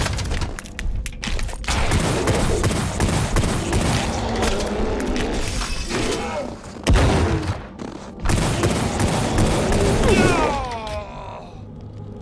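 A creature shrieks and screeches.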